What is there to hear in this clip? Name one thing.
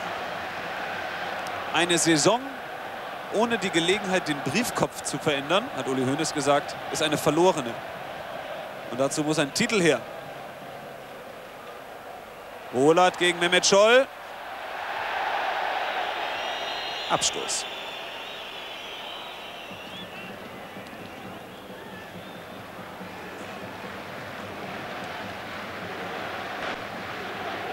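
A large stadium crowd murmurs and cheers outdoors.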